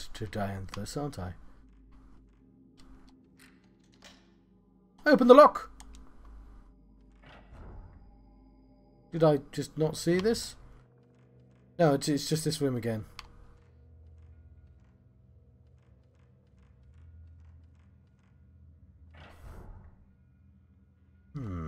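A man speaks into a close microphone in short bursts, with animation.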